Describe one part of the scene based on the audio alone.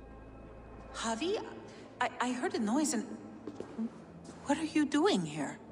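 A woman speaks with surprise, close by.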